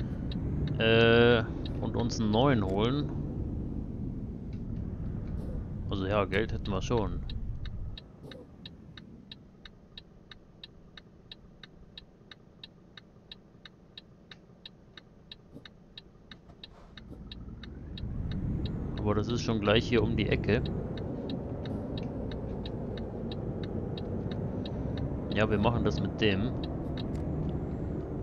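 A truck engine rumbles low, drops to a quiet idle, then picks up again.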